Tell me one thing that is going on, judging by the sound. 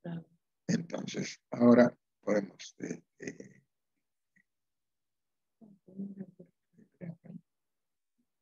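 An elderly man reads aloud over an online call, pausing between phrases.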